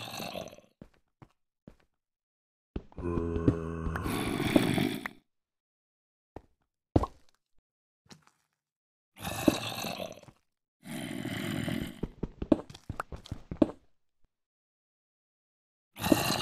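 Stone blocks crack and crumble as a pickaxe mines them.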